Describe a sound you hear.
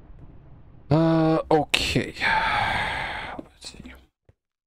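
A young man speaks briefly, close to a microphone.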